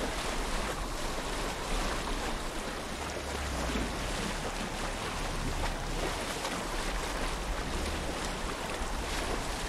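Water splashes and laps steadily against a gliding boat.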